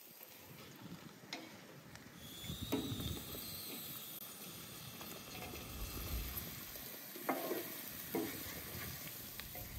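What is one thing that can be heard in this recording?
Meat and onions sizzle in a hot pan.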